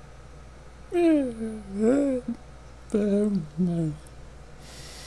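A young man speaks briefly and calmly into a headset microphone.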